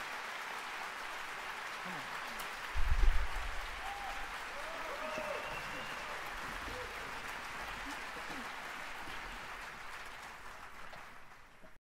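An audience applauds steadily in a large hall, then fades.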